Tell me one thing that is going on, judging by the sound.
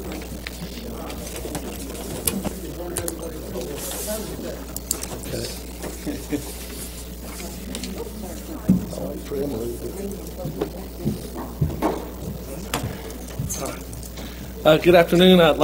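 People murmur quietly in the background.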